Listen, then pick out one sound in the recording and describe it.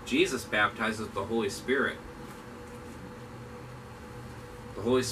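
A man speaks calmly into a nearby microphone, pausing between phrases.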